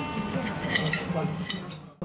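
A knife and fork scrape on a plate.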